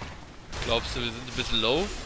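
Weapons strike in a short fight.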